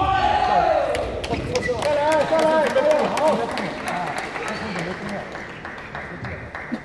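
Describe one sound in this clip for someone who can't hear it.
A small crowd claps.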